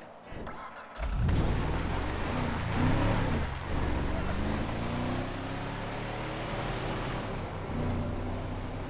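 A pickup truck's engine rumbles as the truck drives off.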